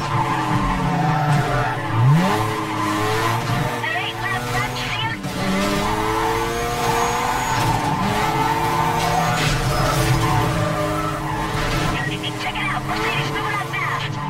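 Tyres screech while a car drifts through a bend.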